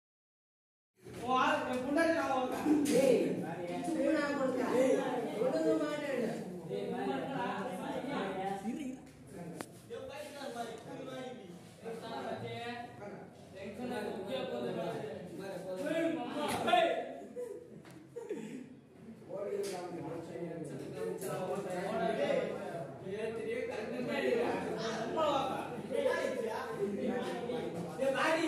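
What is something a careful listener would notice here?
A young man talks loudly and with agitation close by.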